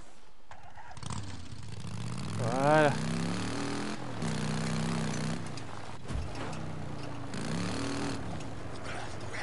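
A motorcycle engine revs and roars.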